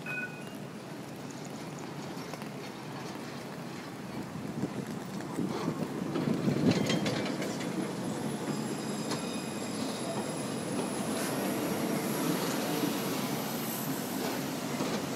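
A tram rumbles past close by.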